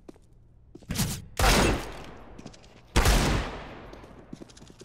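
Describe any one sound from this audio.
Loud pistol shots ring out with echo.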